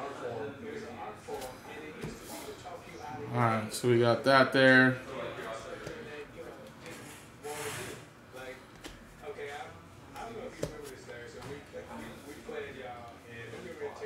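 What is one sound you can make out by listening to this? Trading cards slide and tap against each other in hands.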